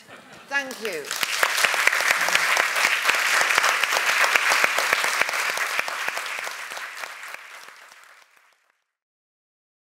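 An audience applauds loudly and then fades away.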